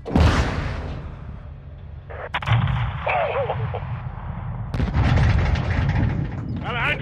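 Heavy explosions boom and rumble in quick succession.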